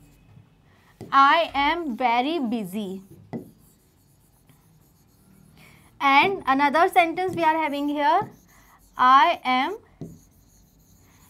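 A young woman speaks clearly into a microphone, in short teaching phrases with pauses.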